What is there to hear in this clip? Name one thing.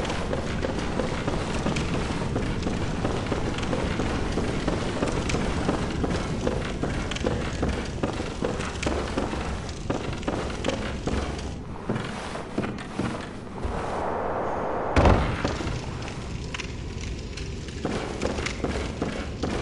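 Footsteps run quickly across a wooden floor.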